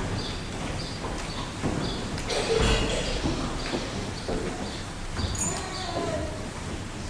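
A man speaks in a low voice in a large, echoing hall.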